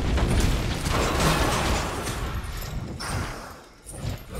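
Fiery spell blasts crackle and roar loudly.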